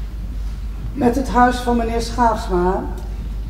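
A woman speaks from a distance in a large hall.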